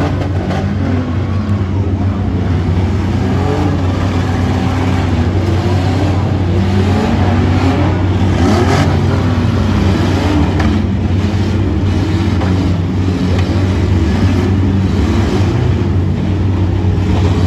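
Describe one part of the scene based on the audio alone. Metal crunches as cars smash into each other.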